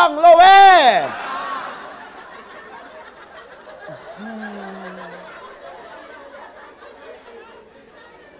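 A crowd of young people laughs and chatters.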